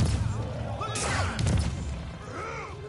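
A small device bursts with a deep, booming blast.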